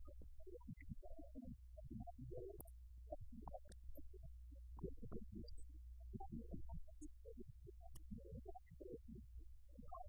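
A man speaks calmly into a microphone, heard a little way off.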